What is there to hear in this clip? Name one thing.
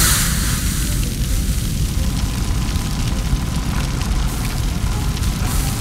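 A water hose sprays with a loud hiss.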